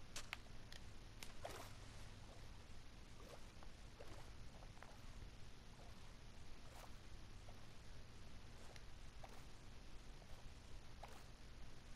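Water splashes and bubbles as a swimmer moves underwater.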